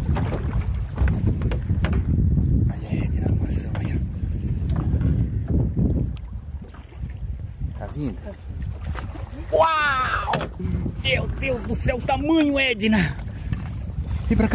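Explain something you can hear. Wind rumbles steadily outdoors on open water.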